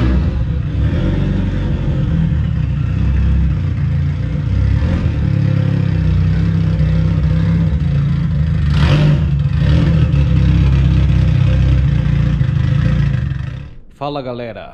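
A sports car engine rumbles at idle as the car creeps forward.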